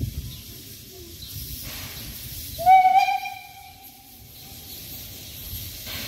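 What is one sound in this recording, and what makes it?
A steam locomotive chuffs slowly in the distance.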